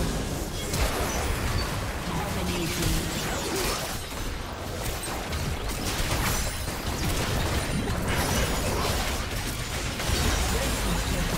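Magic spells crackle and boom in a noisy fantasy battle.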